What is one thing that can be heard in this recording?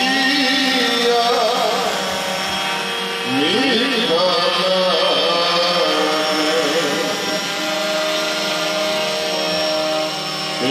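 A man chants a prayer through loudspeakers, outdoors.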